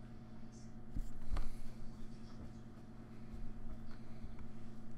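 Small plastic pieces click and tap on a mat as they are moved by hand.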